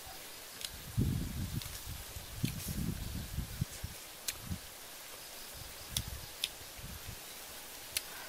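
A young woman chews food noisily close by.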